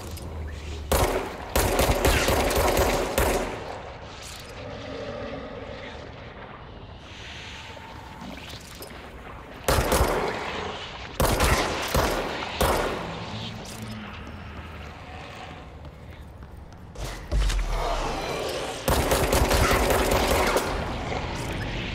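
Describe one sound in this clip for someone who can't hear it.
Explosions boom and crackle with a roar of fire.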